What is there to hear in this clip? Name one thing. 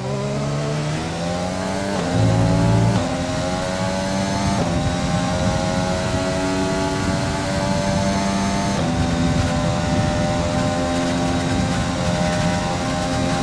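A racing car engine screams at high revs, climbing in pitch and dropping sharply with each gear change.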